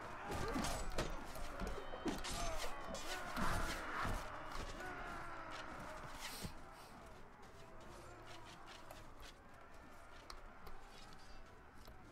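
Footsteps thud on stone and wooden boards.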